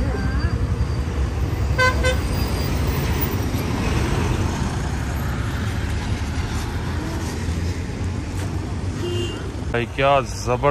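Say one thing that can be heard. Engines of trucks and motorbikes rumble past on a busy road outdoors.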